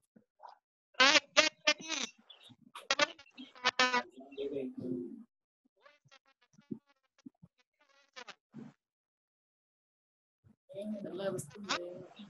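A young girl sings and chants loudly and with animation, close to a microphone.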